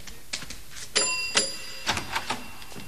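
A man knocks on a door.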